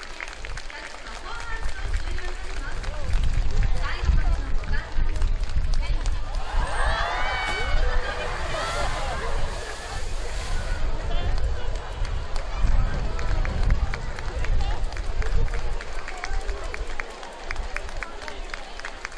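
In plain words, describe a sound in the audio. A crowd murmurs and chatters in the open air.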